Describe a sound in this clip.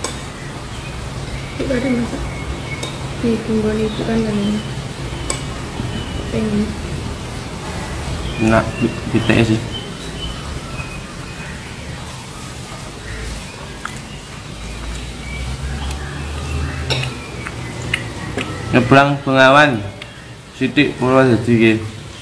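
A spoon clinks and scrapes against a plate.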